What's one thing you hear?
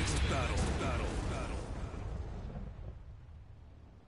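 A loud explosion booms and rumbles away.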